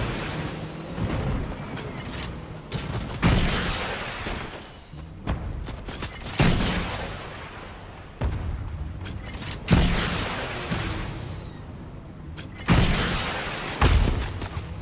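Loud explosions boom in bursts.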